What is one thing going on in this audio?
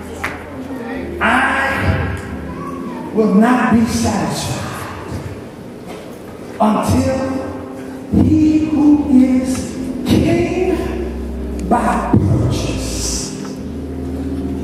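A man preaches with passion into a microphone in a large echoing hall.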